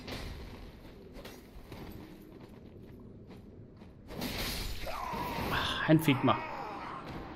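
Swords clash in a fight.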